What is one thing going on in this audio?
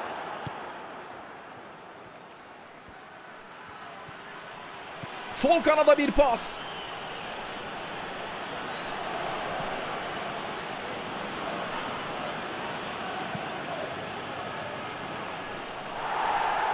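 A large stadium crowd murmurs and roars steadily.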